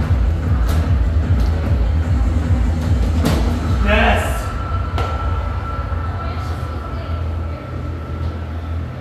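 Dance game music plays loudly with a thumping beat.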